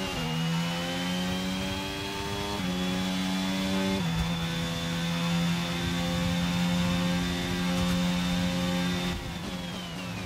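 A racing car engine screams at high revs, shifting up through the gears.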